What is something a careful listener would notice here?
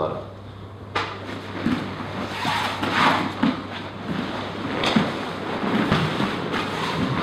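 Bodies thump and shuffle on a padded mat.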